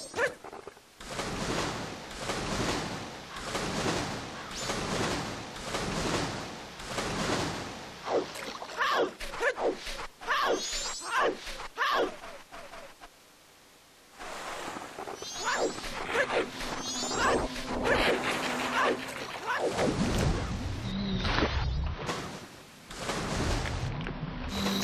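Water splashes steadily.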